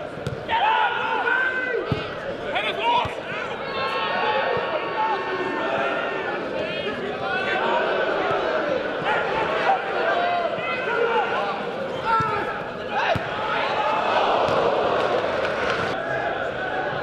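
Male players shout to each other across the pitch.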